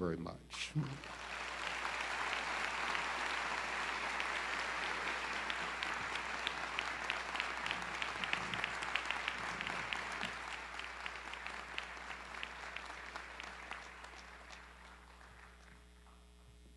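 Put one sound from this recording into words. An audience applauds loudly and then fades.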